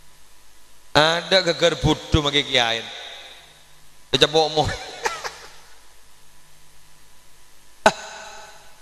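A man preaches loudly and with animation into a microphone, echoing through loudspeakers outdoors.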